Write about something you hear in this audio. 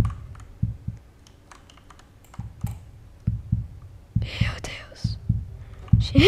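Footsteps thump quickly on a hard floor.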